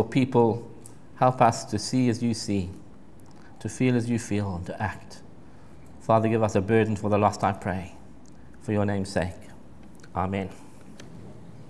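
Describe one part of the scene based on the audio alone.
An elderly man speaks calmly through a microphone in an echoing room.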